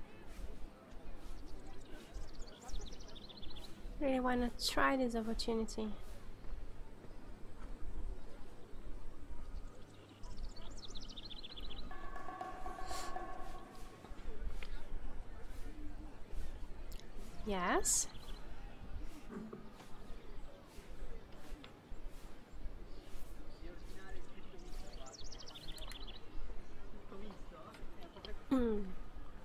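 Men and women chat quietly in the background outdoors.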